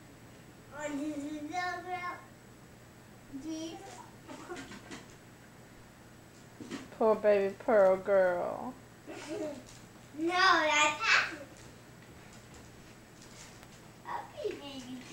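A young boy squeals and laughs nearby.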